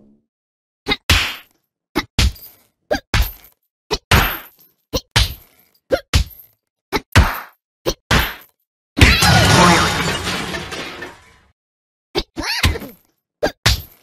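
A punching bag thumps under quick blows.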